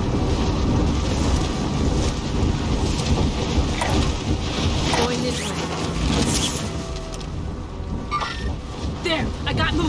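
Wind rushes loudly past during a fast fall through the air.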